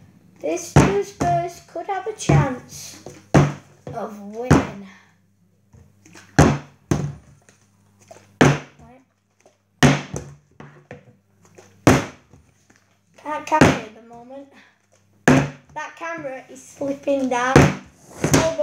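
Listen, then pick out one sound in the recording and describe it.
A plastic bottle lands with a thud on a table.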